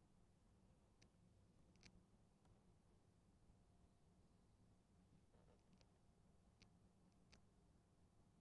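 Keys click now and then on a laptop keyboard.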